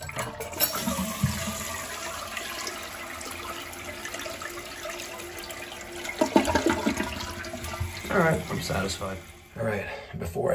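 Water rushes and gurgles as a toilet flushes.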